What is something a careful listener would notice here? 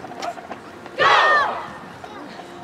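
A crowd briefly cheers and whistles loudly.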